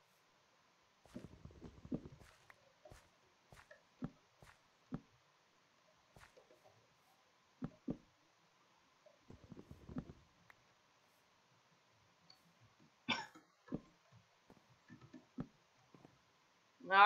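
Footsteps thud softly on grass and wood at an uneven pace.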